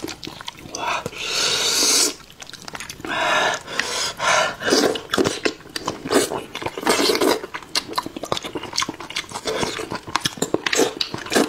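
A young man slurps food loudly.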